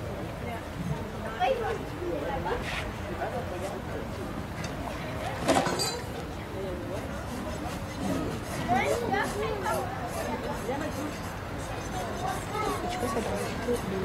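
A crowd of adults chatters nearby outdoors.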